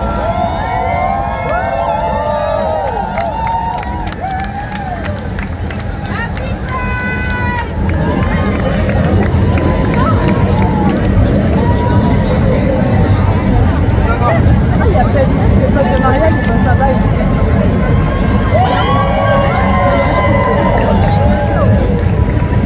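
A large crowd of men and women chatters and cheers outdoors.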